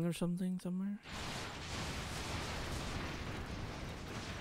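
Cannon fire and explosions rumble steadily in a battle.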